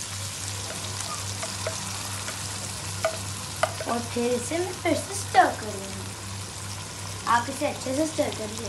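Oil sizzles softly in a hot pan.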